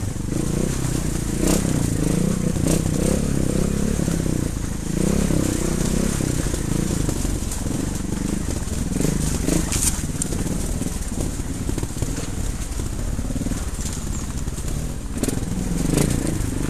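A motorbike engine rumbles and revs as it rides along a rough trail.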